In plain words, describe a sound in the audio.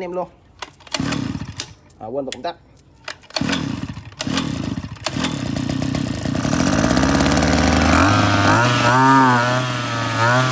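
A small petrol engine sputters into life and runs, revving higher toward the end.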